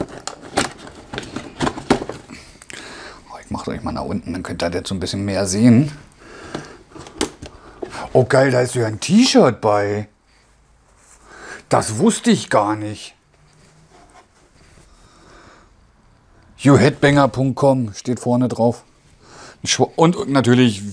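A man talks calmly and closely to the microphone.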